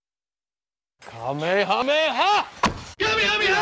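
A man shouts loudly with animation.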